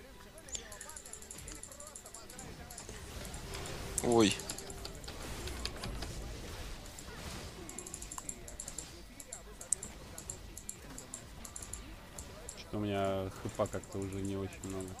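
Short game sound effects click and chime rapidly.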